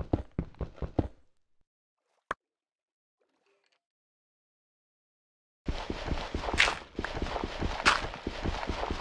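Blocks of stone are dug with quick, repeated crunching knocks.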